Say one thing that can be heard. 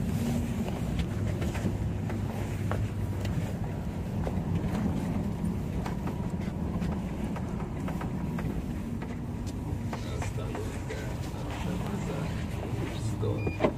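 Loose fittings rattle and click as the bus rolls along.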